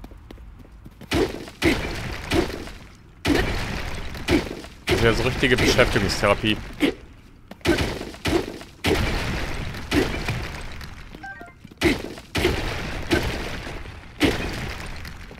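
Heavy blows smash against rock with sharp crashing impacts.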